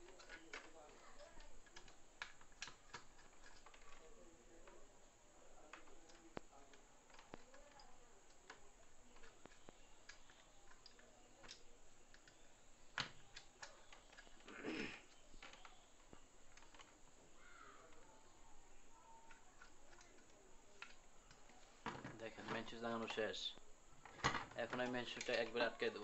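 Small plastic clicks and taps sound close by as wires are pushed into an electrical socket.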